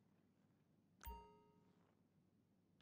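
A computer plays a short ringing chime.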